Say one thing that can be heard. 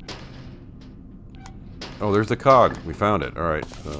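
A cabinet door creaks open.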